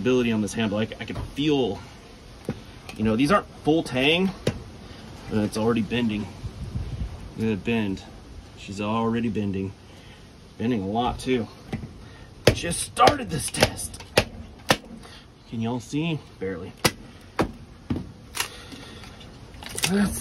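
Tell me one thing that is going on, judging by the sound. Wood splits and cracks apart.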